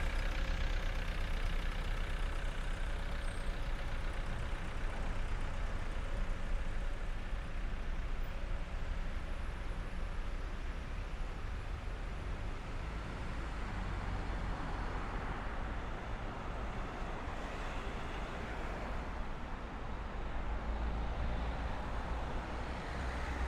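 Traffic rumbles along a city street.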